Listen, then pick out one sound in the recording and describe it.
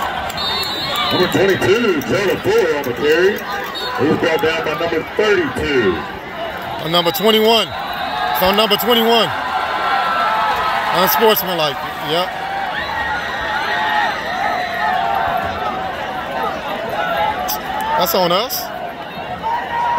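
Men in the crowd nearby shout and talk excitedly.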